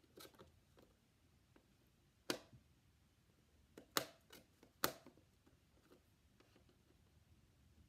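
Small magnetic tiles click and tap onto a metal tray.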